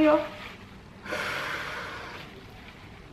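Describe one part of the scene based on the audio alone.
A woman blows her nose into a tissue.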